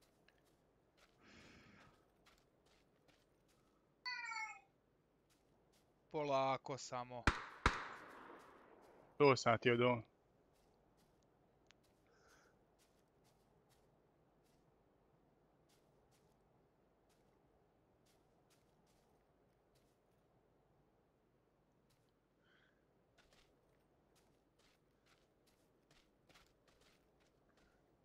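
Footsteps rustle softly through tall grass.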